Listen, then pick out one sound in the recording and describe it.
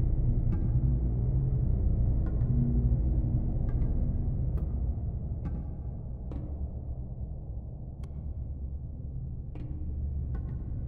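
A low electrical hum drones steadily throughout.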